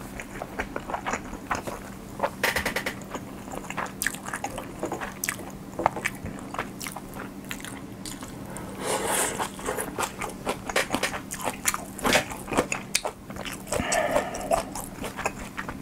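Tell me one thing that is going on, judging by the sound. A young man chews food loudly and wetly close to a microphone.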